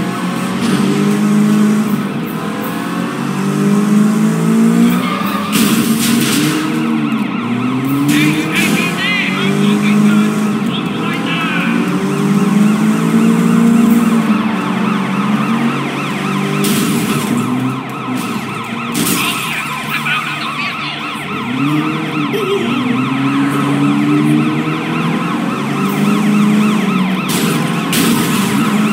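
A car engine revs up and down as the car speeds along.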